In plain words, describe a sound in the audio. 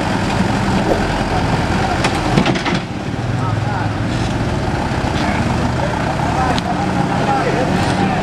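A heavy truck engine rumbles and strains at low speed.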